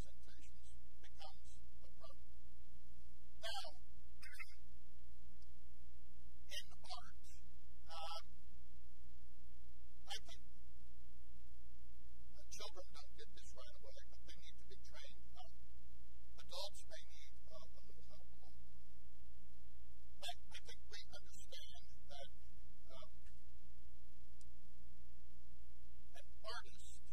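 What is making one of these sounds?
An older man speaks calmly and earnestly, with pauses between phrases.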